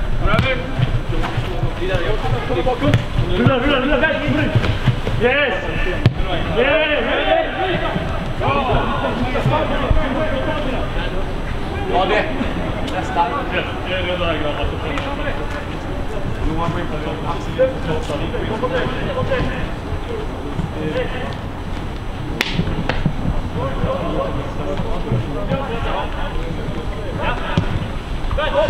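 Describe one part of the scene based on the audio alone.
Footballers shout to each other across an open pitch.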